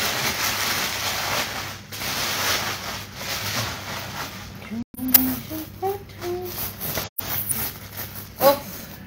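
Sequins on a bag rustle and clink as it is handled.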